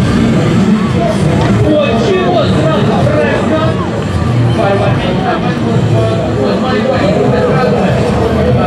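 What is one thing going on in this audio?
Scooter wheels roll and clatter on a ramp.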